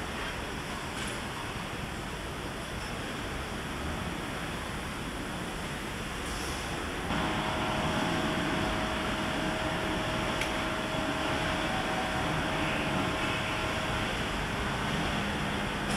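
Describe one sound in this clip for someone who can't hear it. Factory machinery hums steadily in a large echoing hall.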